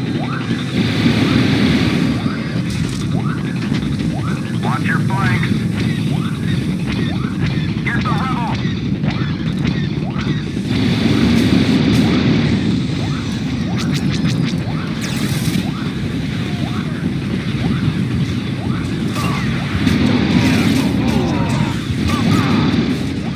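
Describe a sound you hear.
Laser guns fire in quick, repeated zaps.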